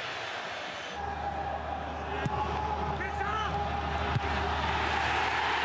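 A crowd roars and cheers in a large stadium.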